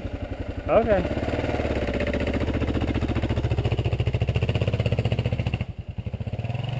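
A motorcycle engine revs hard as the bike climbs over rocks.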